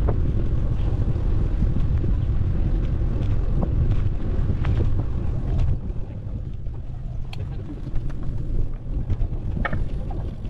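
Wind buffets the microphone outdoors with a low rumble.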